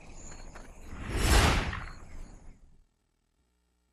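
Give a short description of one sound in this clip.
A loud blast bursts and quickly fades.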